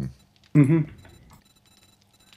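A man says a few words close to a microphone.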